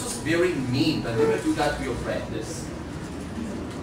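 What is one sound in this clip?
A man speaks clearly and calmly to a room, as if teaching.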